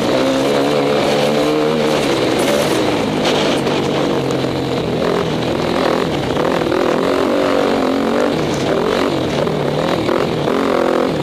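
Tyres crunch and rattle over a bumpy dirt track.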